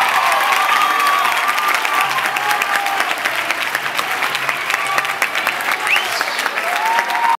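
A crowd in an echoing hall claps loudly and steadily.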